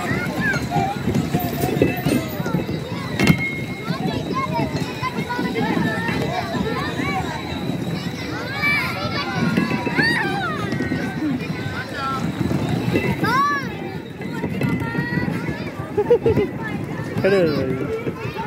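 Young children squeal and laugh close by.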